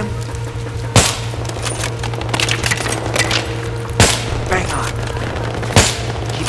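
A sniper rifle fires loud single shots.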